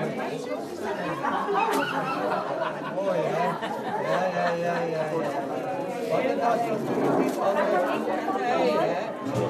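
A crowd of adults chatters all around in a busy room.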